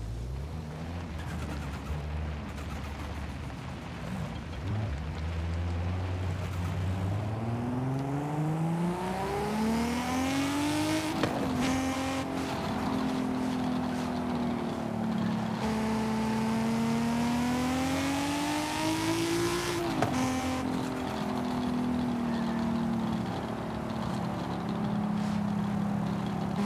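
A car engine revs higher and higher as it speeds up, then drops as the gears shift.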